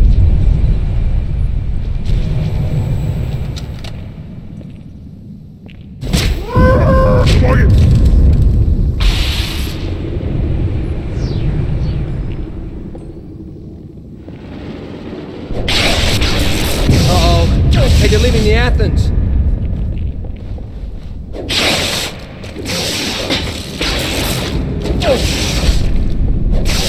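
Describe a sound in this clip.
An electric weapon crackles and buzzes.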